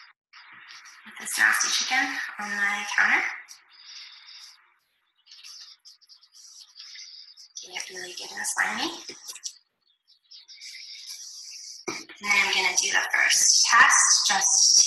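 A young woman talks calmly and clearly into a nearby microphone.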